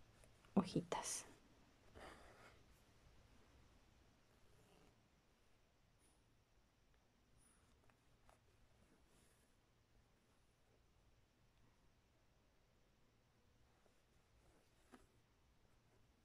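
Thread rasps softly as it is pulled through taut fabric.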